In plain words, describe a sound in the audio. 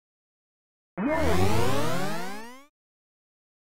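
A short electronic tone rises in pitch.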